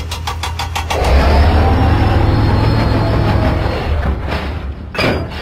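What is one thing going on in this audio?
A small diesel shunting engine rumbles as it rolls along rails.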